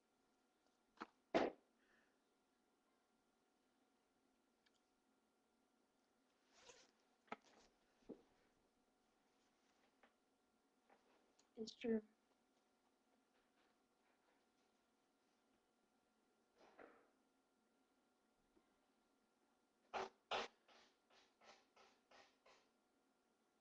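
Fabric rustles and bumps against a microphone.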